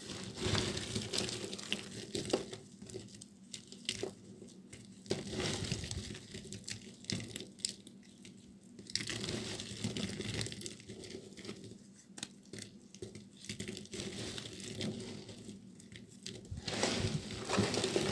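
Hands crumble and rustle brittle flakes of soap, with crisp cracks and crackles close up.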